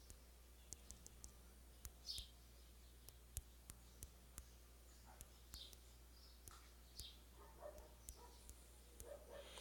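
Keys click softly as a phone keyboard is tapped.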